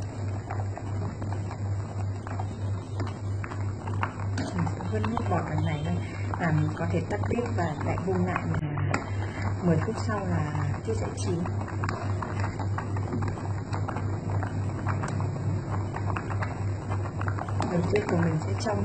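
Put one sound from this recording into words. Water boils and bubbles steadily in a pot.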